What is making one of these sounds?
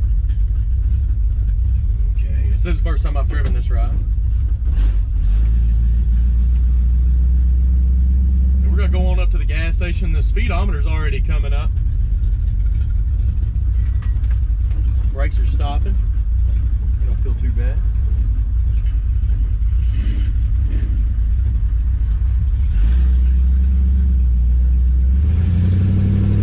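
A car engine rumbles deeply and steadily, revving up at times.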